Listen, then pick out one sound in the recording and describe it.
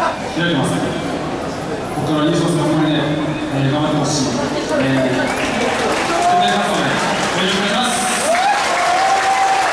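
A young man speaks into a handheld microphone, heard over a stadium loudspeaker outdoors.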